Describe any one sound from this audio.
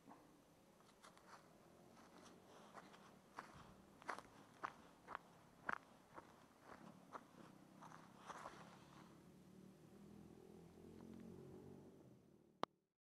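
Footsteps crunch through dry grass and leaves outdoors.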